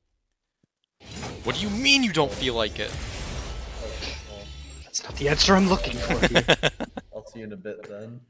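A shimmering magical chime swells and rings out.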